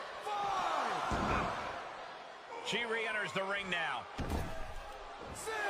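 A body thuds heavily onto a mat.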